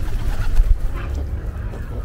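A duck splashes in the water.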